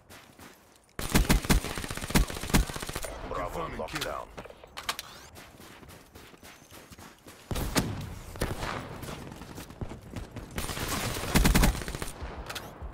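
A rifle fires rapid bursts of gunfire.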